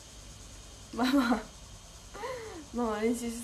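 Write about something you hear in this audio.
A young woman laughs briefly.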